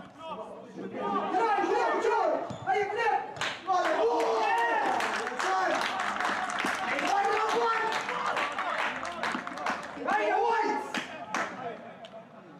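Young men shout and cheer excitedly outdoors.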